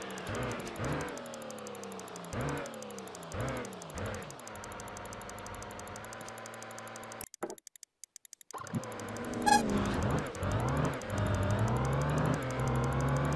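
A truck engine hums and climbs in pitch again and again as it shifts through the gears.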